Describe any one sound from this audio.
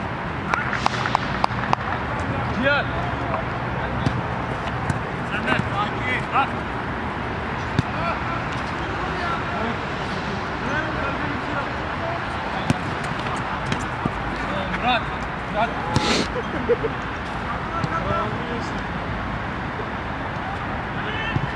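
Men shout and call out across an open outdoor pitch.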